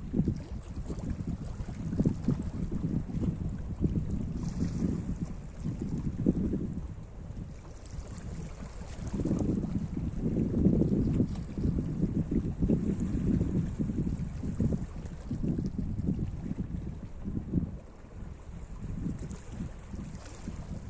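Wind blows and rumbles outdoors.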